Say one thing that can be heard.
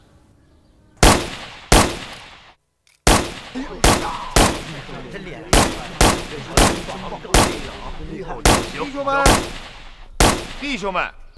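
Gunshots ring out one after another, echoing.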